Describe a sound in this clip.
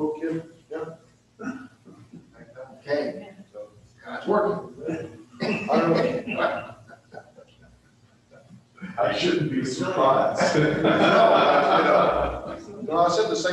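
A man speaks with animation through a microphone in a large echoing hall.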